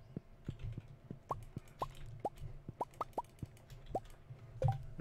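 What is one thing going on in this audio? Short game sound effects blip and click.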